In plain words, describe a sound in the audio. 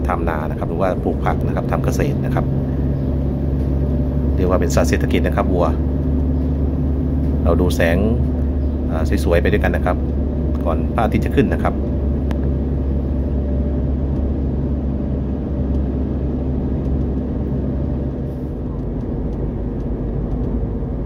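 Tyres roll steadily on smooth pavement.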